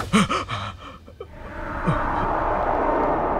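A young man cries out in alarm close by.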